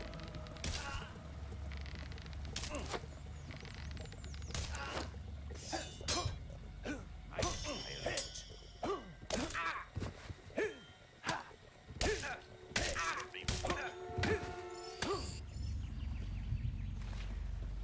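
Footsteps thud on a wooden bridge.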